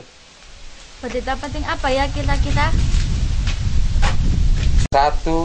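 Young girls talk nearby in high voices.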